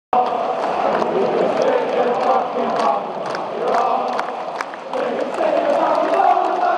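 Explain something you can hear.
A large stadium crowd sings and chants loudly in the open air.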